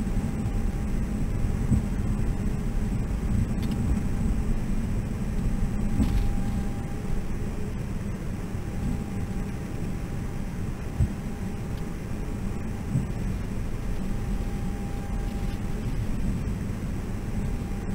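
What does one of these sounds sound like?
Jet engines hum low and steady as an airliner taxis.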